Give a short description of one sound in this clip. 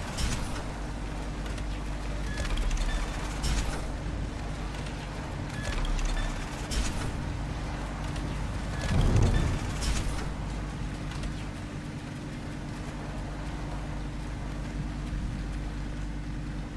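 A sports car engine idles with a low, steady rumble.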